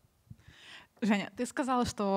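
A young woman speaks cheerfully into a microphone.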